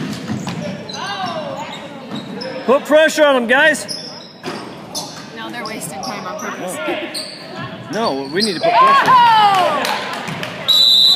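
Sneakers squeak sharply on a hard court floor in an echoing gym.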